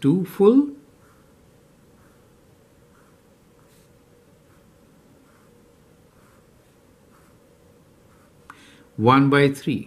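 A marker squeaks and scratches on paper in short strokes.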